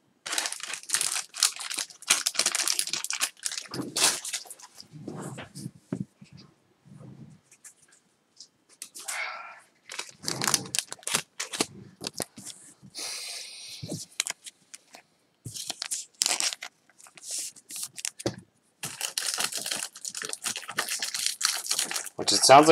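A trading card in a plastic sleeve rustles softly as hands handle it.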